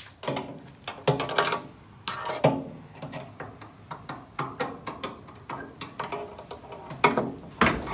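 A finger taps and scrapes on a car's thin metal body.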